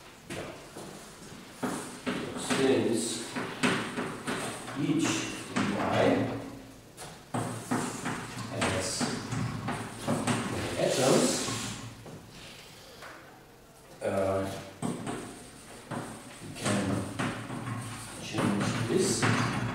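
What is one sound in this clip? An elderly man lectures calmly in a large echoing room.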